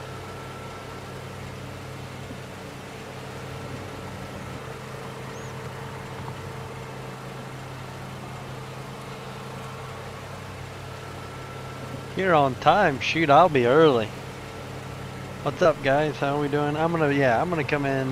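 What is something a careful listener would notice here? A small mower engine hums steadily.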